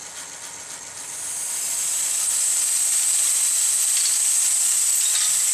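Dry grains rattle and hiss inside a model machine, up close.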